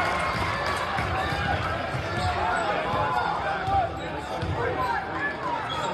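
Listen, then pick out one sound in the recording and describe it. A bouncing ball thumps on the floor.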